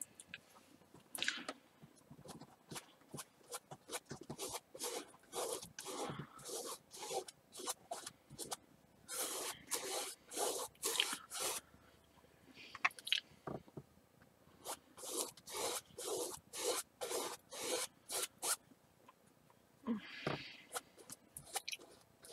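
A paintbrush scrubs and swishes across canvas in quick, repeated strokes.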